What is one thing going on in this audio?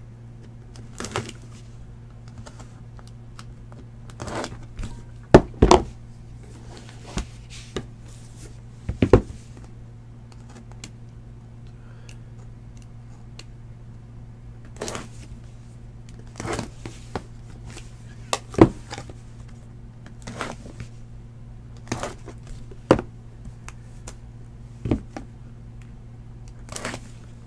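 Cardboard boxes slide and knock against a table.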